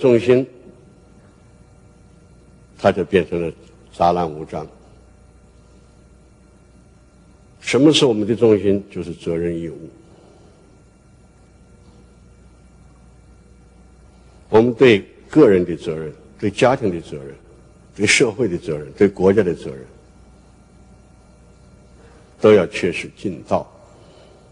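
An elderly man speaks slowly and deliberately into a microphone, with long pauses.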